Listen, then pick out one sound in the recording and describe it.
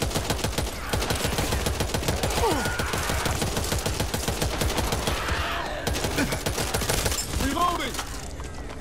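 A zombie shrieks as it charges.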